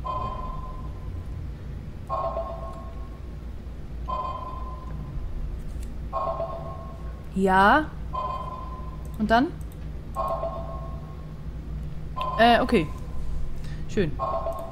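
A computer terminal beeps in a steady, repeating pulse every two seconds.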